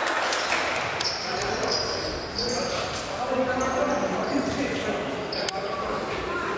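Sneakers squeak sharply on the hall floor.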